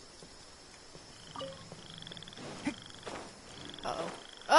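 Short bright chimes ring out several times.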